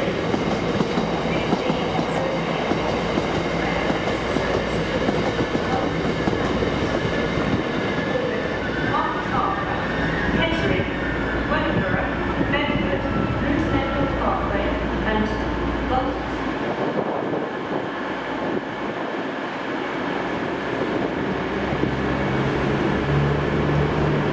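A diesel train engine rumbles as a train pulls slowly into a station.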